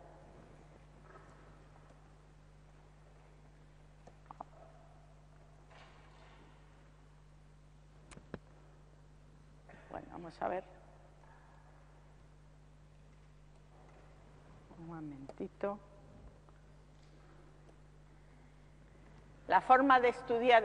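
An elderly woman speaks calmly and haltingly into a microphone.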